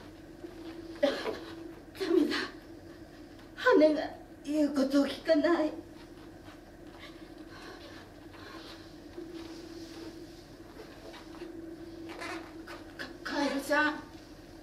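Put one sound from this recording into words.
A woman speaks in short bursts in a large, echoing room.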